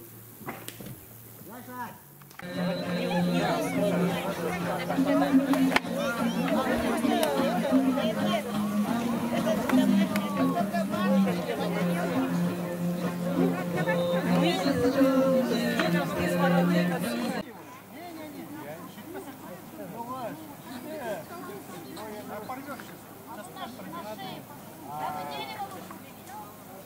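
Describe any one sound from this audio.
A crowd of men and women chatter and talk outdoors.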